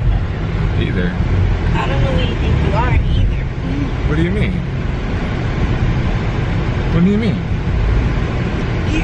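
A car engine hums steadily inside the car.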